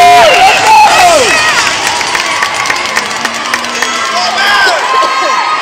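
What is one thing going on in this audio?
A group of young women shout a cheer in unison.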